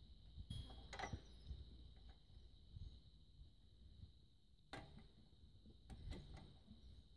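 A metal hydraulic coupler clicks into place.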